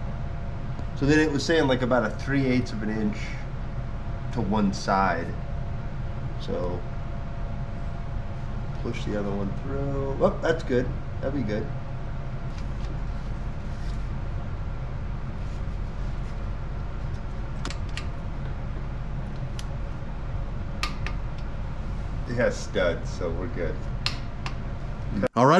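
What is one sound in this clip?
Two men talk calmly nearby.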